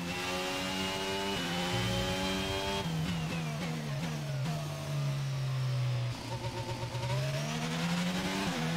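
A racing car engine screams at high revs, dropping in pitch as it shifts down and brakes, then rising again as it accelerates.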